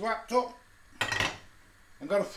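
A metal pan clanks down onto a gas hob.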